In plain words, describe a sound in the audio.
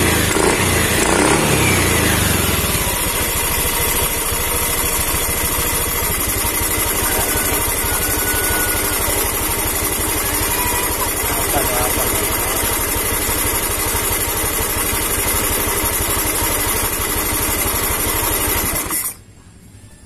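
A motorcycle engine idles with a steady, rapid putter, then cuts off.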